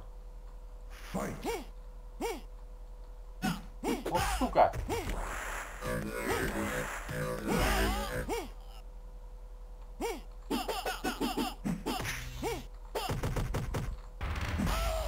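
Punches and kicks land with sharp thuds in a video game fight.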